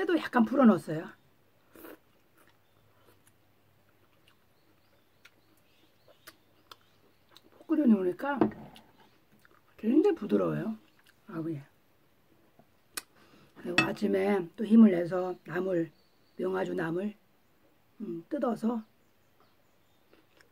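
An elderly woman slurps and chews food.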